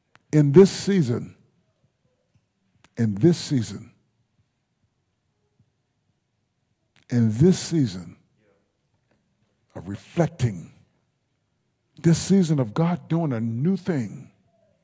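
A man preaches into a microphone in short, emphatic phrases with long pauses between them.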